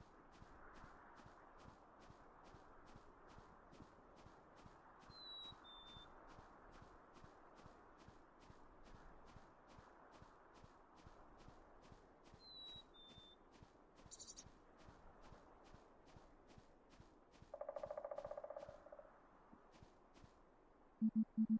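Soft footsteps patter steadily on a dirt path.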